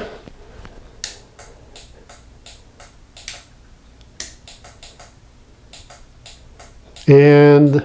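A turn signal relay clicks in a steady rhythm.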